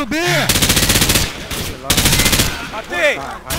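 A rifle fires rapid bursts of gunshots close by.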